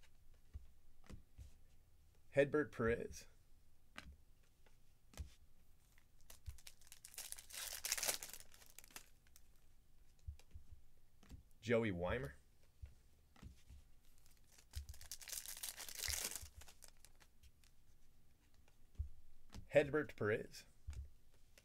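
Trading cards shuffle and click against each other.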